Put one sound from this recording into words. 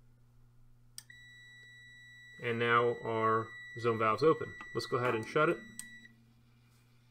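A meter gives a steady high beep.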